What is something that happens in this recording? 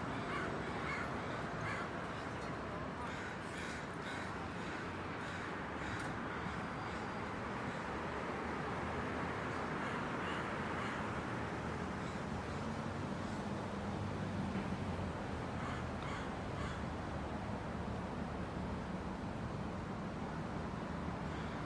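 City traffic drives past steadily on a street outdoors.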